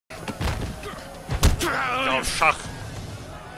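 Blows land with heavy thuds in a fistfight.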